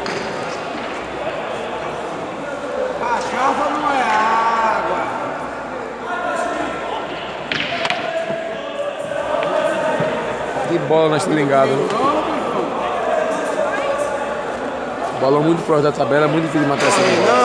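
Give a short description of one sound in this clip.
A crowd of men chatters loudly in a large echoing hall.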